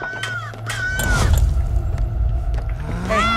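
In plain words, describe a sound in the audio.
Wooden objects crash and scatter across a floor.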